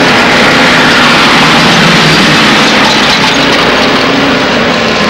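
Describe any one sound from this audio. A car engine roars as a car speeds over a dirt track.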